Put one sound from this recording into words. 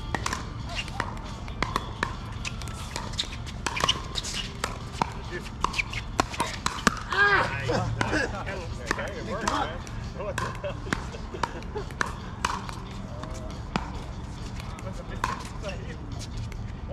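Paddles strike a ball with sharp hollow pops again and again.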